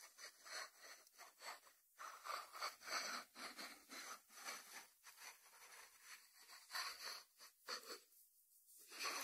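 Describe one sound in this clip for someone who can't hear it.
A ceramic dish slides across a wooden board.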